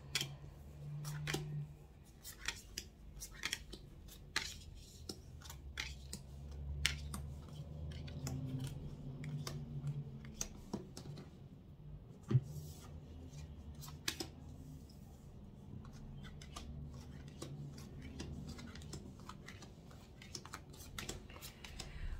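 Cards are laid down one by one on a table with light taps and slides.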